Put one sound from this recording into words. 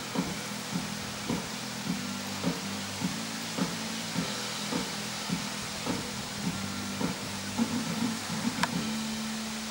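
A horse's hooves thud rhythmically on soft sand as it trots.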